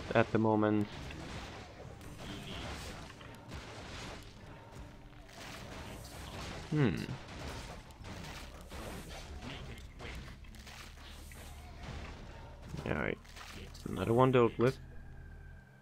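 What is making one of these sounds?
Creatures roar and grunt as they fight.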